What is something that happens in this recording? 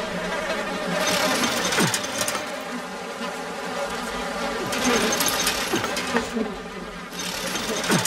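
A metal chain rattles and clanks.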